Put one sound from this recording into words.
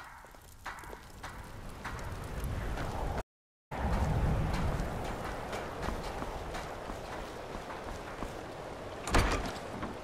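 Footsteps thud on wooden planks and stone.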